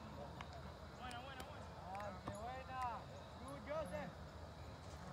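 Young players shout to each other across an open field in the distance.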